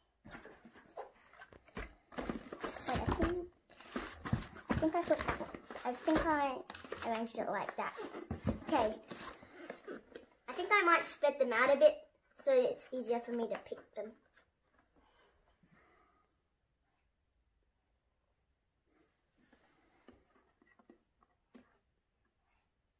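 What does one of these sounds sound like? Toy boxes slide and knock against each other in a cardboard box.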